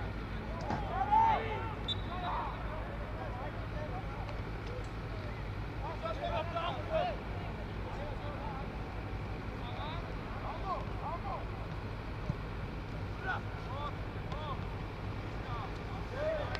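Young men shout and call to each other across an open field outdoors.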